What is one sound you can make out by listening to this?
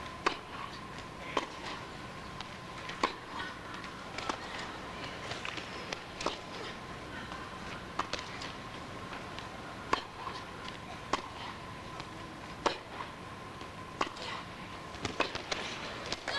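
Tennis balls are struck sharply back and forth in a long rally.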